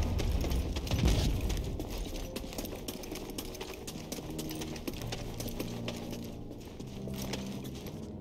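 Quick footsteps patter on a stone floor.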